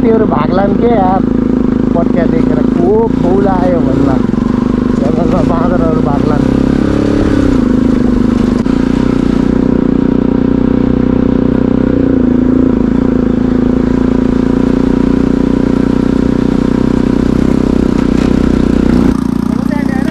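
A motorcycle engine hums steadily on a rough dirt track.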